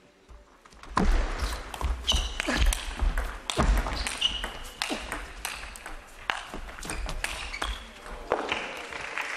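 A table tennis ball clicks back and forth off paddles and the table in a quick rally.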